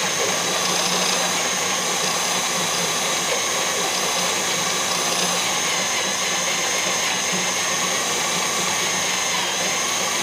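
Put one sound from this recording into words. A drill press whirs steadily as its bit grinds into metal.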